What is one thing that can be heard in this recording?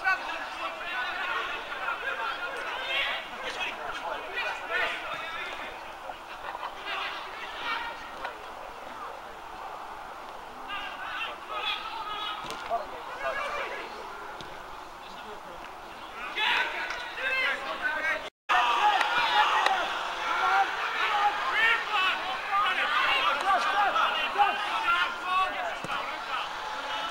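Men shout and call out to each other across an open outdoor pitch.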